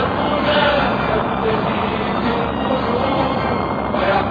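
Tracked vehicles rumble and clank as they roll by.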